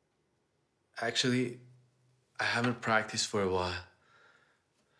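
A man speaks quietly and close by.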